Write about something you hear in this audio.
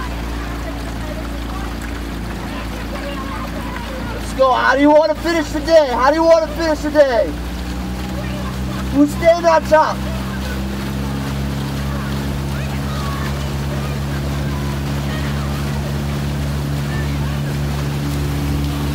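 A motorboat engine hums steadily close by.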